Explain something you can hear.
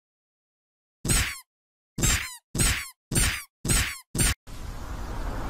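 A mallet knocks several times in quick succession.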